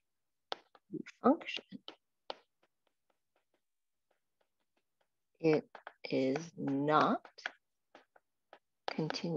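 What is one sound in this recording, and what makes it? A woman speaks calmly over an online call, pausing between phrases.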